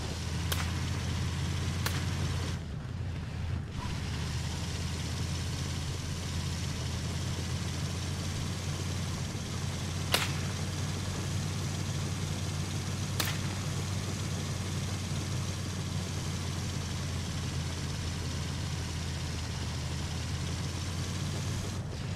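A vehicle engine rumbles steadily as it drives.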